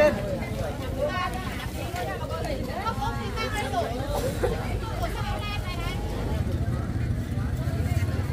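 A plastic bag rustles as a man handles it.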